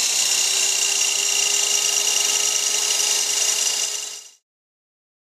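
A power miter saw whines loudly as it cuts.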